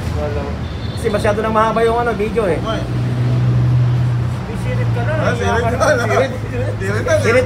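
A man speaks with animation close by, his voice slightly muffled.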